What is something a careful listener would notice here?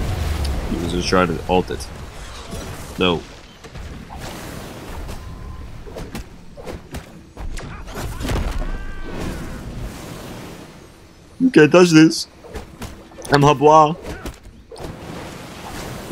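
Rushing, whooshing effects sweep past.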